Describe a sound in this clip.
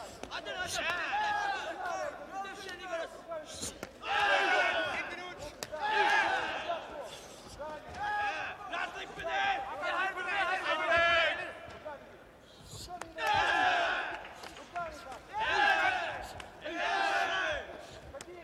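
Kicks and punches thud against bodies.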